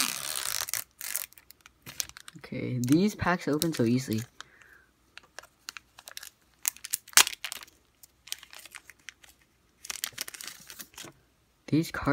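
A foil wrapper crinkles and rustles in hands.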